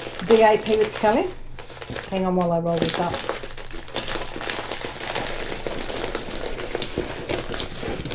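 Plastic film crinkles and rustles under hands.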